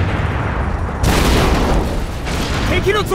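A loud explosion booms and debris clatters.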